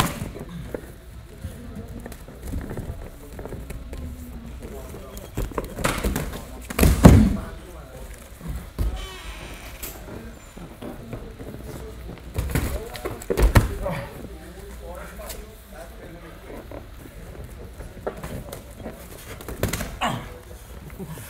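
Feet shuffle and squeak on a mat.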